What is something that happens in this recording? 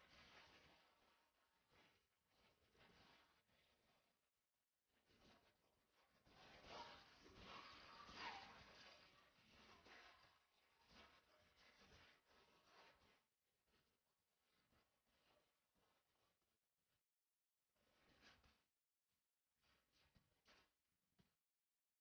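A woman sings powerfully into a microphone.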